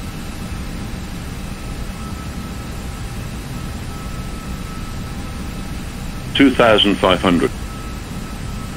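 Jet engines drone steadily in a cockpit.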